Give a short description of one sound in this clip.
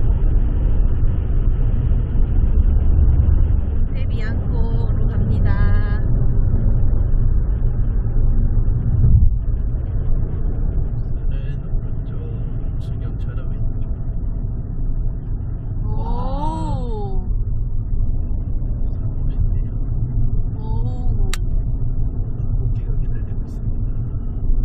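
A car engine hums steadily with road noise, heard from inside the car.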